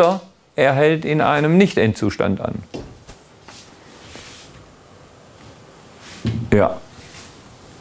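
A middle-aged man speaks calmly in a room with a slight echo.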